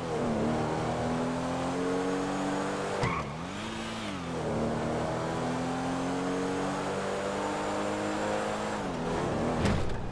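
A car engine revs loudly, its pitch rising and dropping as gears shift.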